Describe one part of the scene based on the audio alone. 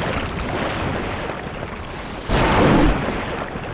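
Water splashes heavily as a large sea creature bursts out of it.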